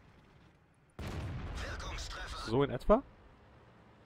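A tank cannon fires with a loud, booming blast.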